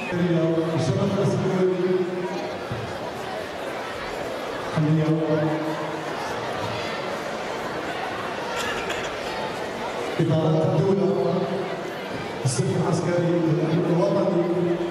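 A children's choir sings together in a large hall.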